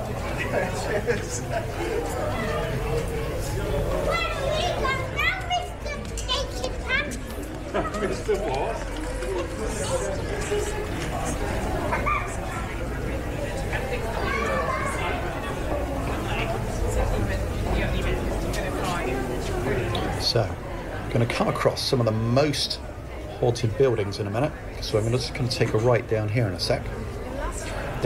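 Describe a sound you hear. A crowd of people chatters and walks along a street outdoors.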